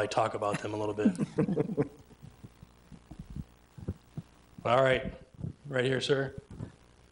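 A man reads aloud into a microphone.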